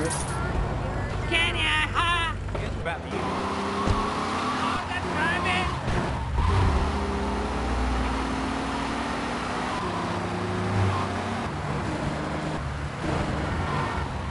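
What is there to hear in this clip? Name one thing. A taxi car's engine hums as it accelerates.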